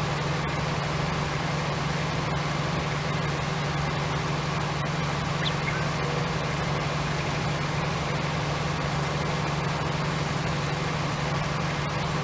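A harvester's engine drones steadily while driving through a field.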